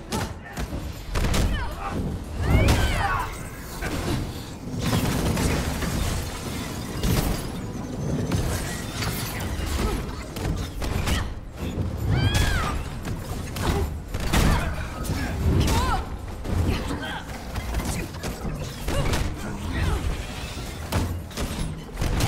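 Heavy punches and impacts thud repeatedly.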